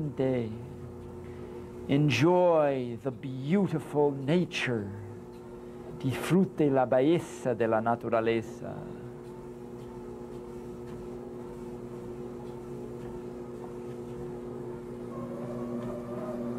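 A treadmill hums steadily.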